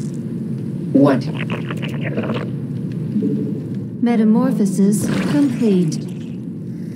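Alien creatures chitter and screech.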